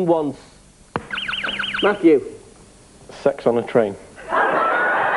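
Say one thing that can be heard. A young man answers with a laugh.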